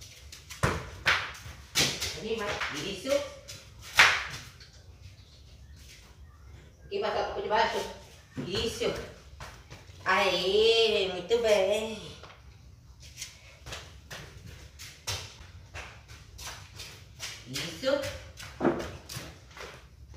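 Bare feet slap on a hard floor.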